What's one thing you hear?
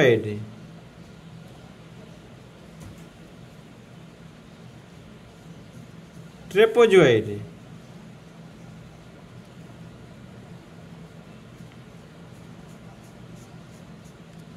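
A paintbrush strokes softly across paper.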